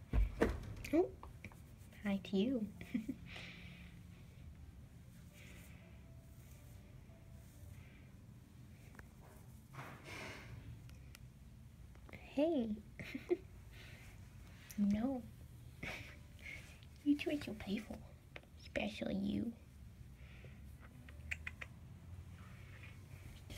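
A hand strokes a cat's fur with a soft rustle.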